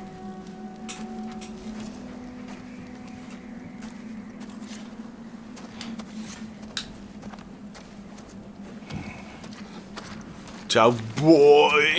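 A knife scrapes and shaves wood in short strokes.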